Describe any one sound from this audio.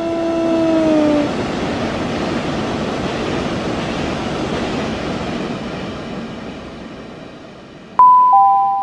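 A train rushes past at speed with a loud roar that slowly fades away.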